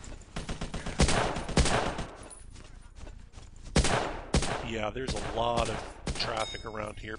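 A rifle fires sharp, loud shots one after another.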